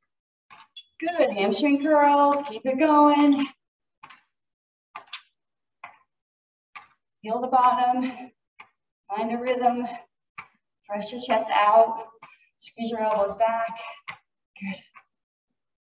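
A young woman speaks with animation, heard close through a microphone.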